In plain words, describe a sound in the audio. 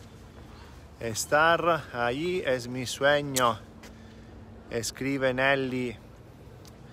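A middle-aged man speaks calmly close to the microphone.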